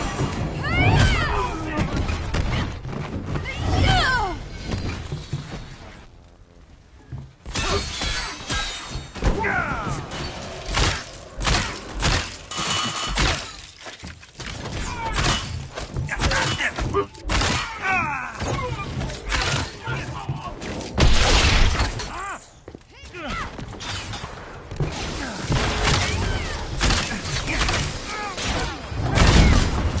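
Gunshots and blasts crack in quick bursts.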